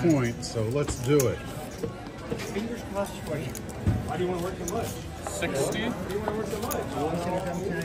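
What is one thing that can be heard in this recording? Casino chips click and clack together as they are stacked and slid.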